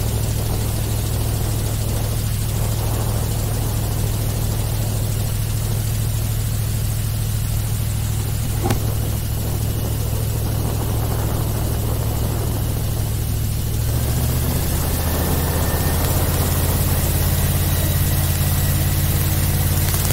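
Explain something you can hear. Wind rushes past over open water.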